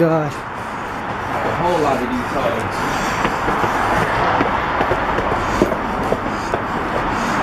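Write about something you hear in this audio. Footsteps climb concrete stairs outdoors.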